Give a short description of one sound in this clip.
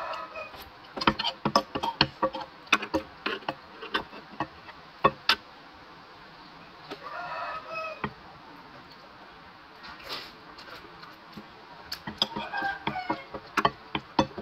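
Chopsticks and a spoon clink on a glass bowl.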